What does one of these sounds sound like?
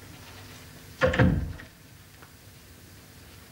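A heavy curtain rustles as it is pulled.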